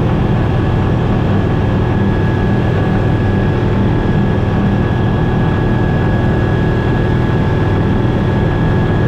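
A small propeller plane's engine drones loudly and steadily from inside the cockpit.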